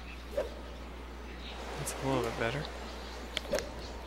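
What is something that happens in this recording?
A golf club swishes and strikes a ball with a sharp whack.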